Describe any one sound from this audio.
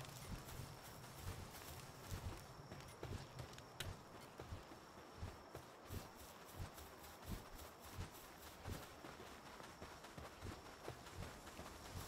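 Footsteps thud steadily on dry ground.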